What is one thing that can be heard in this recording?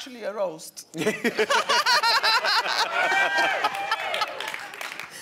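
A middle-aged woman laughs heartily.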